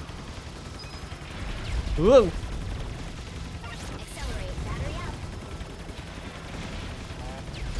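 Electronic zaps and blasts ring out rapidly, with quick pitch sweeps.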